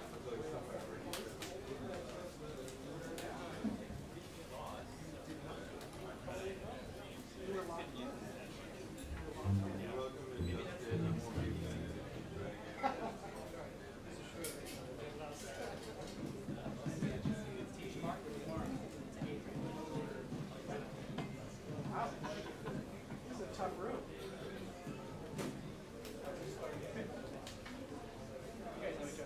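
Several men talk and chatter casually nearby.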